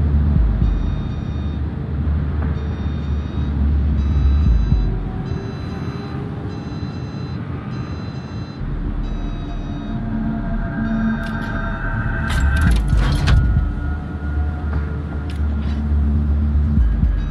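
A ship's engines rumble low and steadily.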